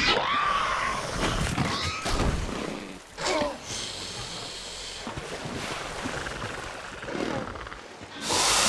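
A large reptile growls and roars.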